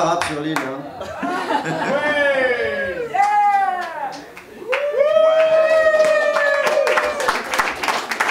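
A small group sings together.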